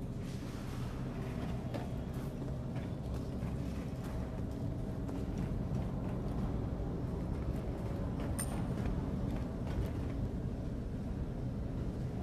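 Steam hisses steadily from vents.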